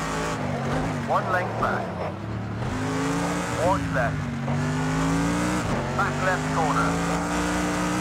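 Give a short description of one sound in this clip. Tyres squeal briefly through the bends.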